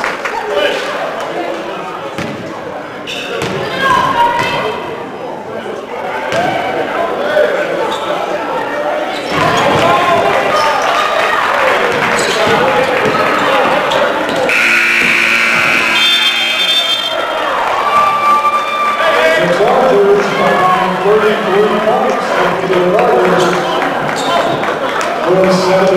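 A crowd in a large echoing gym cheers and chatters.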